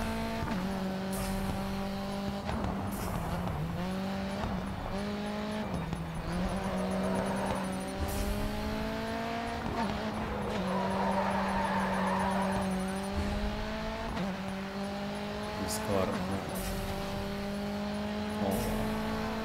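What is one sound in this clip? A racing car engine whines loudly, rising in pitch with each gear and dropping at each shift.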